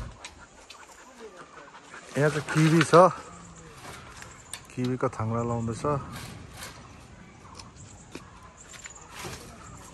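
Leaves rustle and poles knock as a young man handles them.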